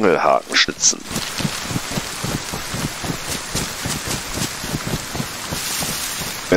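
Footsteps rustle steadily through tall grass and undergrowth.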